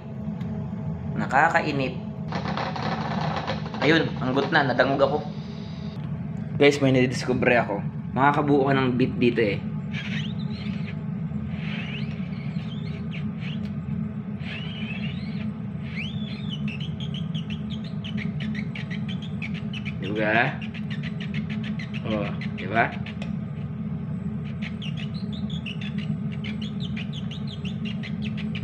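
A gas flame roars steadily under a pot.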